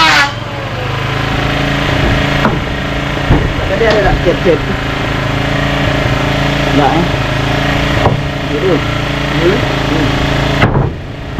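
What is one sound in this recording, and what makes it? An electric power tool hums steadily nearby.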